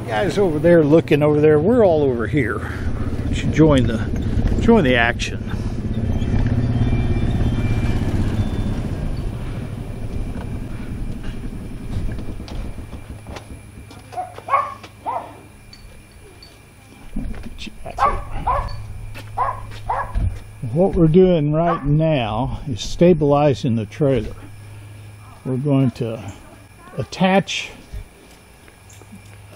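An elderly man talks calmly close by.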